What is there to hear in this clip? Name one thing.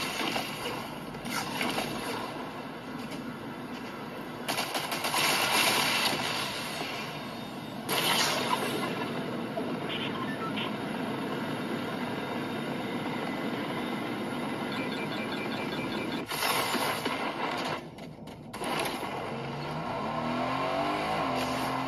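Video game sound effects play from a phone.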